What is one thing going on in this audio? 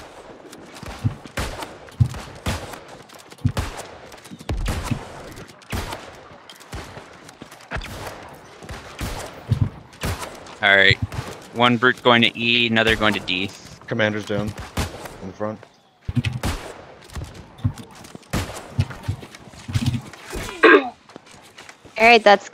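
Shots and impacts crack in quick, uneven bursts.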